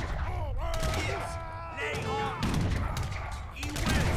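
Cannons fire with heavy booming blasts.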